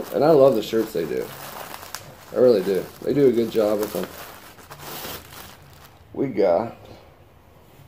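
A plastic bag crinkles as it is opened.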